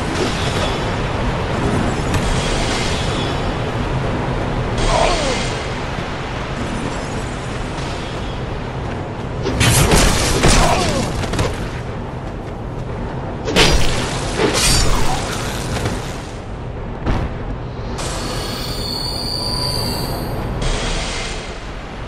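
Magic spells whoosh and burst with a shimmering hiss.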